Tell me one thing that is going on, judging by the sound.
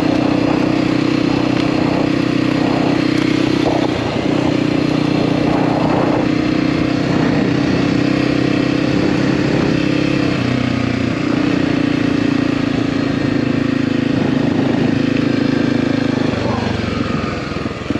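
A dirt bike engine hums steadily close by, its pitch shifting as the rider changes speed.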